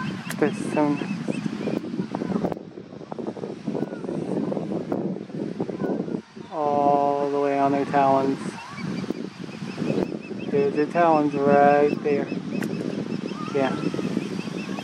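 An osprey gives a series of high, piercing whistling calls close by.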